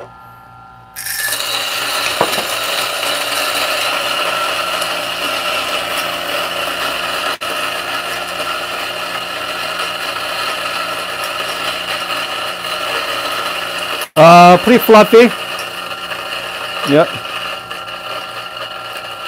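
A coffee grinder whirs steadily.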